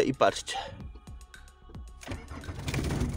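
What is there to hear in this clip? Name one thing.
A car's starter motor cranks briefly.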